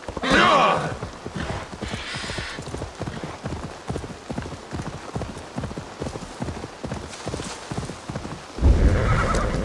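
A horse gallops with quick, regular hoofbeats.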